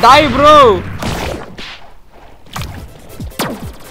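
Magic blasts whoosh and burst.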